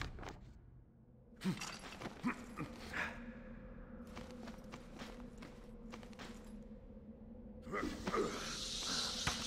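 Footsteps clank on metal.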